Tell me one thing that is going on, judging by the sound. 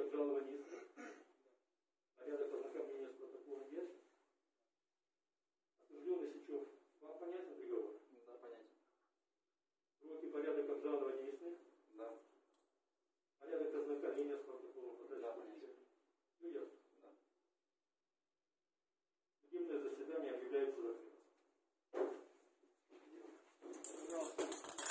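A man speaks calmly nearby in short phrases with pauses.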